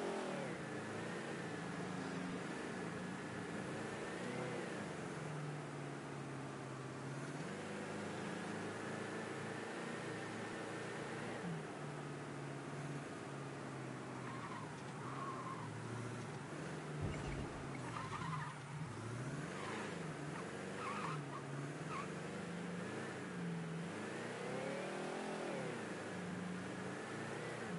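A car engine hums steadily and rises and falls in pitch as it speeds up and slows down.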